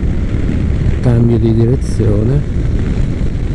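A motorcycle engine revs up briefly.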